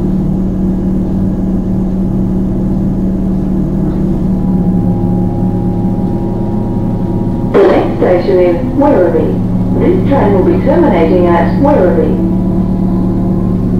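A train hums and rumbles steadily as it rolls along the tracks.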